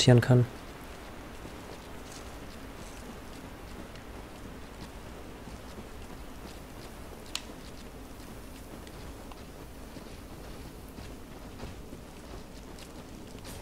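Armoured footsteps crunch and clink on soft ground.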